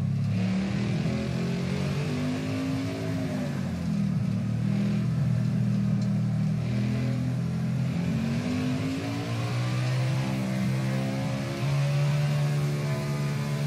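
A race car engine roars steadily, its pitch rising and falling as it shifts gears.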